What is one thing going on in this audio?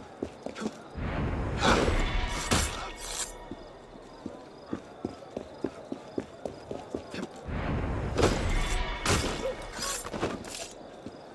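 A heavy body lands with a thud.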